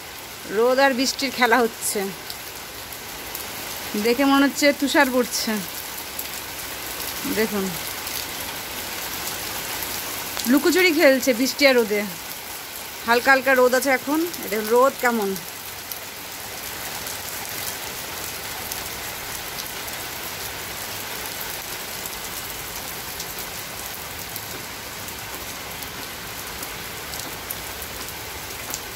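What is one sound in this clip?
Steady rain falls and patters on a wet rooftop outdoors.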